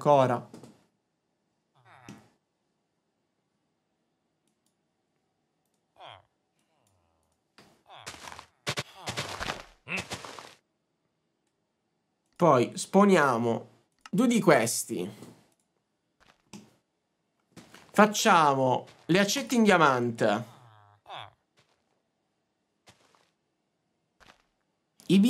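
A young man talks with animation, close to a microphone, in bursts with pauses.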